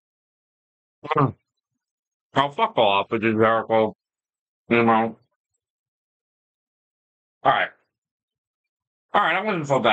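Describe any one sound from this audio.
A middle-aged man speaks casually into a close microphone, in short bursts with pauses.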